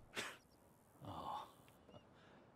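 A man says a few words quietly.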